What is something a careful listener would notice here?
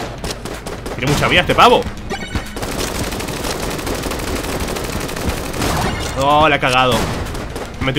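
A video game weapon lets out a loud warbling sweep.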